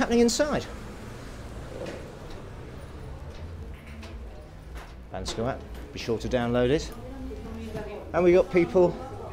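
A middle-aged man talks close to the microphone.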